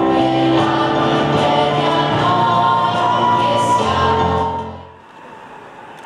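A man sings into a microphone in a large echoing hall.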